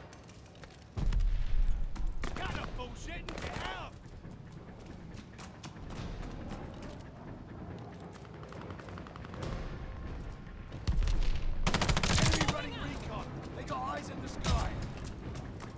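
Gunfire bursts loudly from a game.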